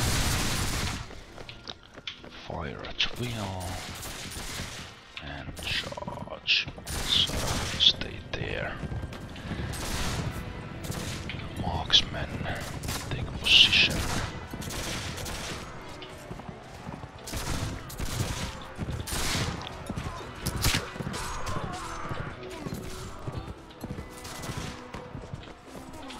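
Muskets fire in scattered shots.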